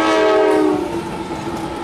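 A train horn blares close by.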